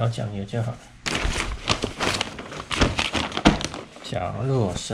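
A large sheet of paper rustles and crinkles.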